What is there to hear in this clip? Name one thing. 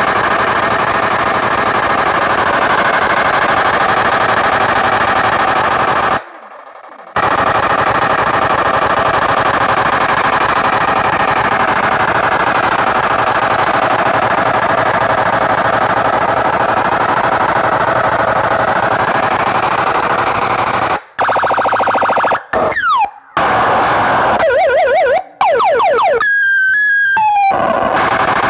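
Loud music blares through huge loudspeakers, heavily distorted.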